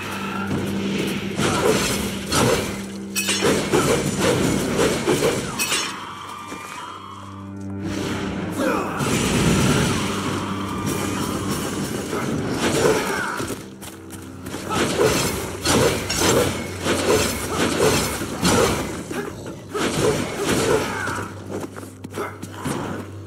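Sword slashes and hits thud again and again in a fast fight.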